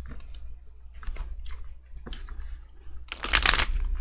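Cards rustle and slide as a hand handles them.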